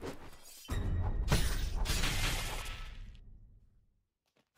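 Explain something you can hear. A loud magic blast whooshes and rumbles, then fades away.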